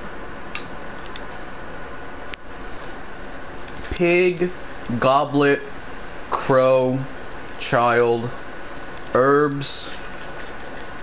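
A combination lock's dials turn with clunking clicks.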